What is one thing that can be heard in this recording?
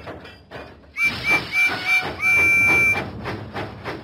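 A steam engine whistle toots several times.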